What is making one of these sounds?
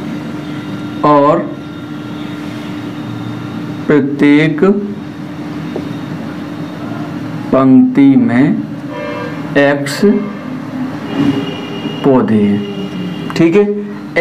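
A man speaks calmly, close by, in short phrases with pauses.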